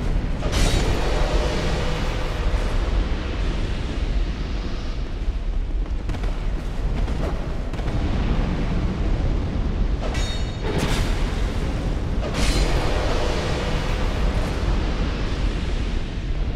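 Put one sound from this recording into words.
Armoured footsteps clank on a stone floor.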